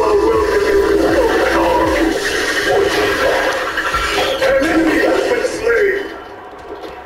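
Weapons clash and spells burst in a busy battle.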